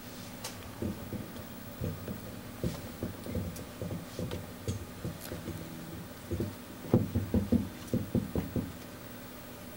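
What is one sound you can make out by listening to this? An electric bass plays a plucked line.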